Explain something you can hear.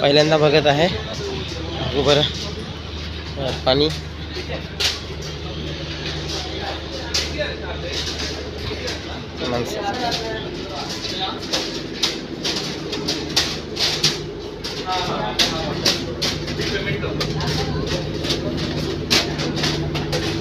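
Footsteps clatter on a metal deck.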